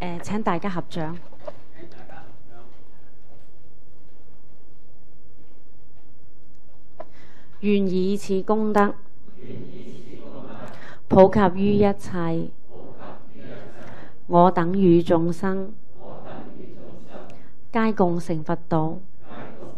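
An elderly woman chants slowly into a microphone, with pauses between phrases.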